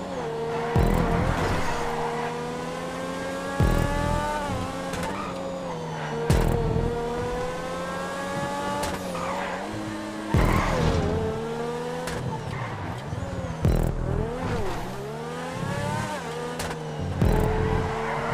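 The sports car's exhaust pops loudly at each gear change.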